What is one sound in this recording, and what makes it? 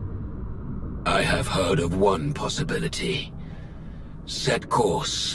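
A man speaks in a deep, menacing voice.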